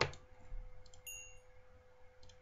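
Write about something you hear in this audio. A short, high pop sounds as an item is picked up in a game.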